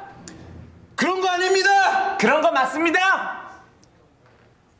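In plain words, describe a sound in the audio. Another young man shouts back loudly.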